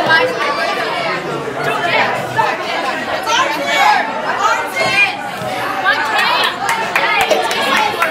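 A crowd of young women cheer and shout excitedly close by.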